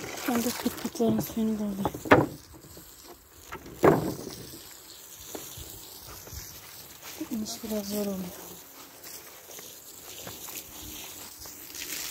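Footsteps crunch over grass and wood.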